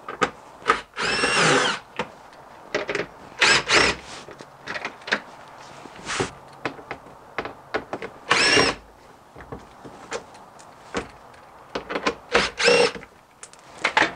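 A cordless impact wrench rattles in short bursts.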